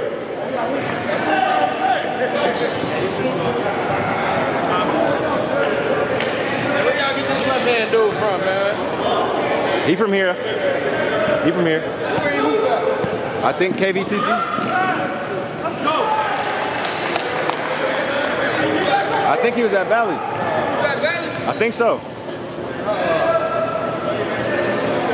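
Young men shout and call out to each other across an echoing hall.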